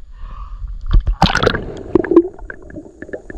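Water splashes loudly as something plunges into it.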